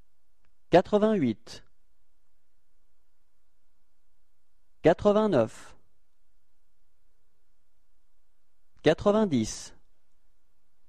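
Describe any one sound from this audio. A young man speaks short phrases calmly and clearly, close to a microphone.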